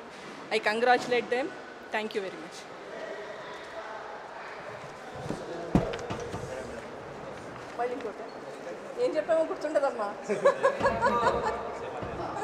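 A woman speaks with animation into microphones close by.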